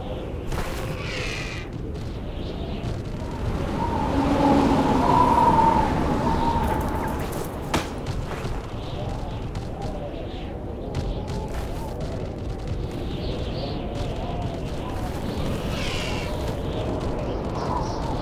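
Hooves of a horse thud steadily on sand.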